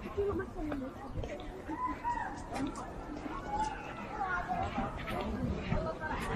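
Children shout and chatter outdoors.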